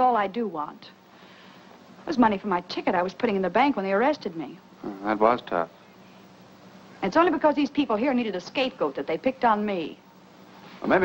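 A young woman speaks calmly and earnestly.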